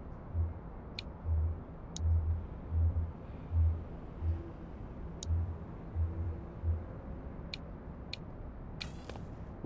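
Soft clicks sound as menu options are selected.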